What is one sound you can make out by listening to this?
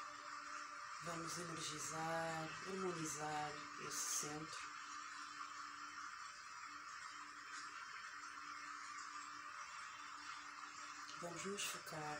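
A young woman speaks softly and calmly, close to a microphone.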